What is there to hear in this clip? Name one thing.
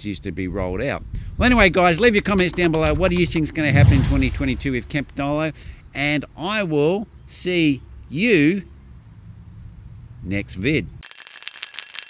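A middle-aged man speaks with animation close to a microphone outdoors.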